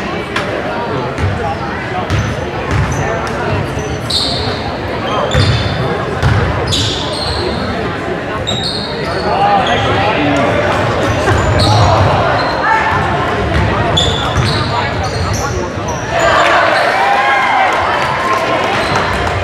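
Young people shout and cheer in an echoing gym.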